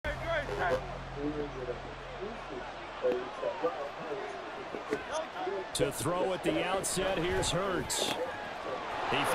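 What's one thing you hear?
A large stadium crowd murmurs and cheers.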